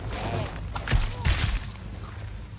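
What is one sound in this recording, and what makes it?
A blow lands with a heavy thud during a scuffle.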